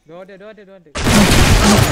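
A rifle fires a loud shot close by.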